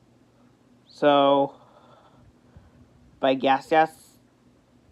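A young man makes loud, drawn-out vocal sounds close by.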